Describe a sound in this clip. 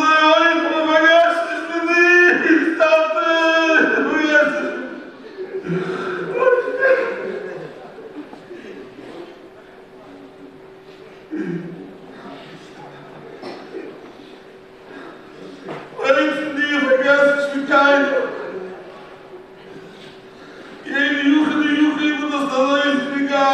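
An elderly man chants emotionally into a microphone in an echoing hall, with pauses.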